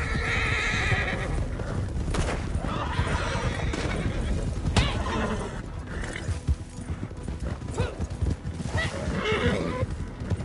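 Horses' hooves thud on a dirt trail.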